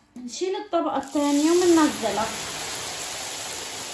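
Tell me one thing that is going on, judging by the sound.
Hot oil sizzles and crackles loudly as noodles drop into it.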